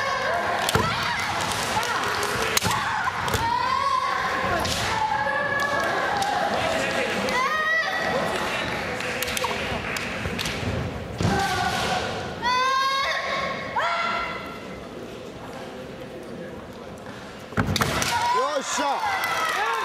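Fencers shout loud, high cries in a large echoing hall.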